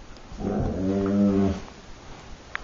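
A dog whines briefly close by.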